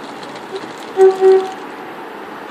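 A train horn sounds two short blasts.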